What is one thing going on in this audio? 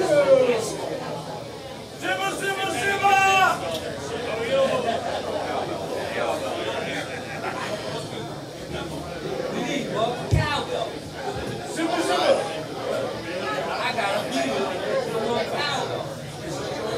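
A man sings loudly through a microphone.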